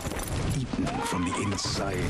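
A horse's hooves thud slowly on sand.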